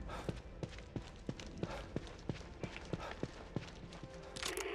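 Footsteps thud quickly as a man runs and climbs stairs.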